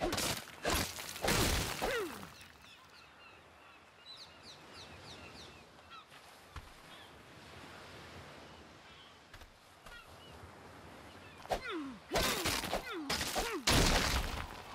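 Waves wash up onto a shore with a steady rush.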